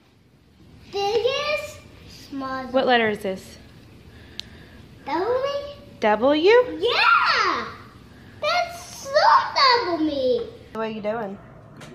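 A young girl talks excitedly close by.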